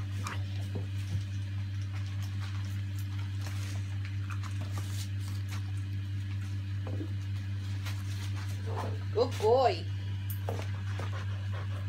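A dog chews and crinkles wrapping paper.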